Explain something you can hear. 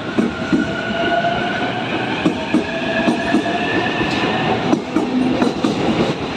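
A train pulls out, its wheels clattering rhythmically over the rail joints.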